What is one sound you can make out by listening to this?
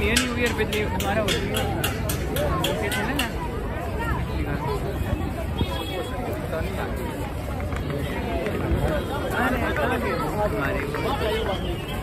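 A large crowd chatters and murmurs outdoors.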